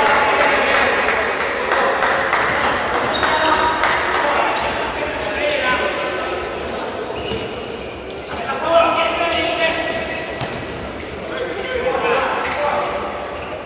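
A futsal ball is kicked across a hard indoor court.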